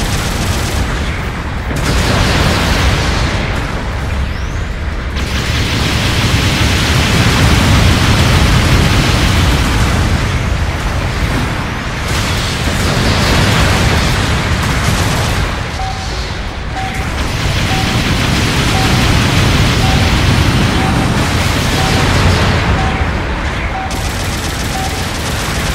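A giant robot's thrusters roar.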